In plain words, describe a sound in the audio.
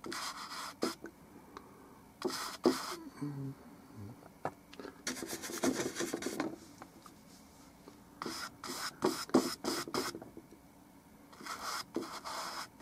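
A paintbrush scrapes softly across canvas.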